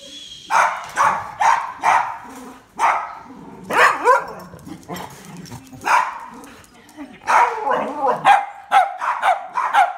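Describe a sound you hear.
A dog barks loudly and repeatedly, close by.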